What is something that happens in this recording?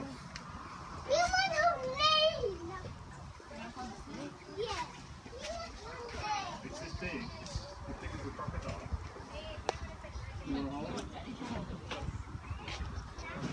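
Children and adults chatter and call out nearby, outdoors.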